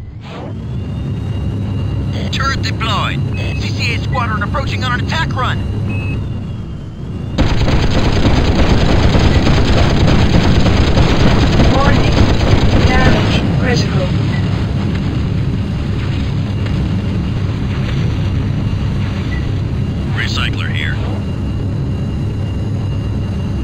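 A low engine hums steadily.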